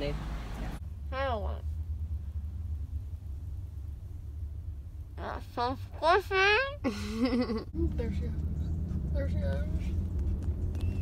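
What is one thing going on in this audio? A young woman speaks in a slurred, groggy voice close by.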